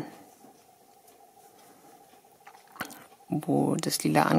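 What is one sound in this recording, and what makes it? A crochet hook softly scrapes and pulls through yarn.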